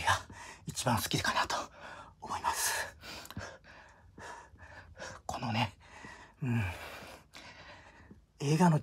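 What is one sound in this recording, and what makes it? A middle-aged man talks close by, breathless and straining.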